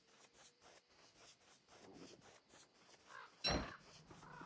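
Quick light footsteps patter.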